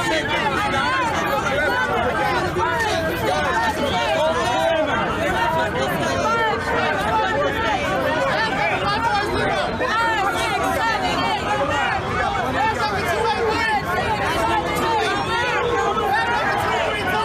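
A crowd of men and women shout and chant loudly, close by, outdoors.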